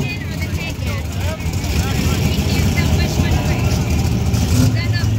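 A drag car's engine idles roughly outdoors.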